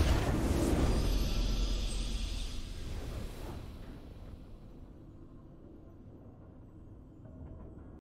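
A triumphant fanfare plays and fades.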